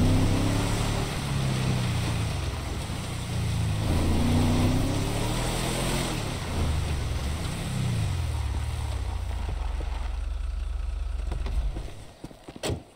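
A truck engine revs and rumbles as it drives over a dirt track.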